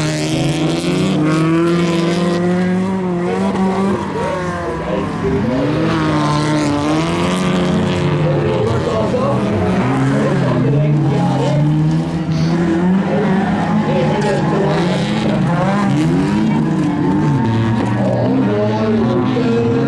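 Racing car engines roar and rev loudly as cars speed around a track.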